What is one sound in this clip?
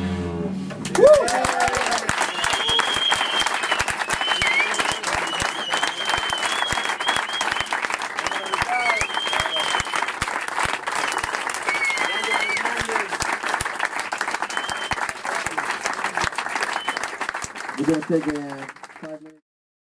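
An audience claps and cheers loudly in a small room.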